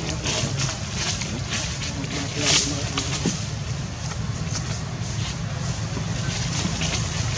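Monkeys scratch and rustle as they groom each other.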